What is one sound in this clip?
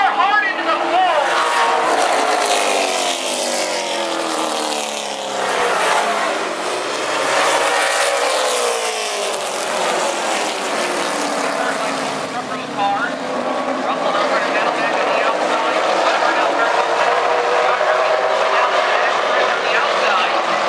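Race car engines roar loudly as the cars speed past.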